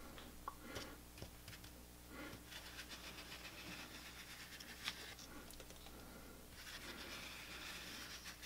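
A putty knife scrapes and smears wet plaster.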